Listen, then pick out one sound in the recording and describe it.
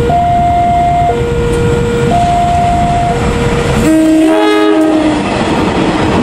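A diesel locomotive sounds its horn in loud alternating two-tone blasts.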